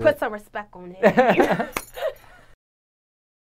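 A young woman laughs loudly close to a microphone.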